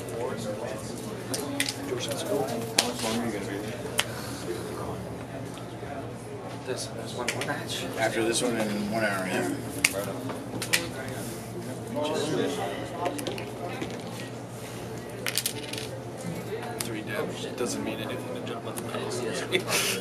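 Playing cards are shuffled and shuffled again.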